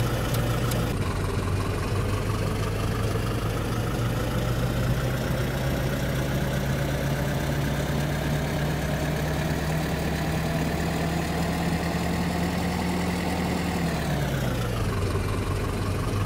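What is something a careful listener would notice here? A bus engine drones, rising in pitch as the bus speeds up, then dropping as it slows.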